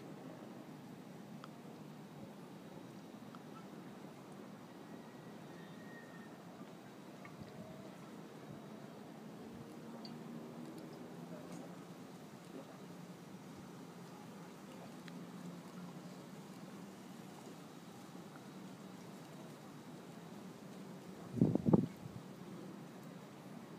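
A man gulps a drink in long, steady swallows.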